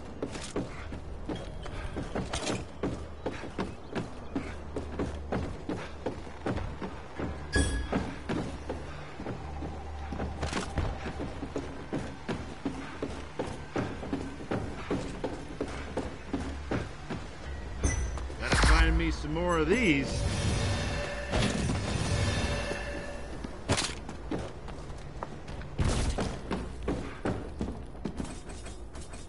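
Footsteps thud steadily on wooden stairs and stone floors.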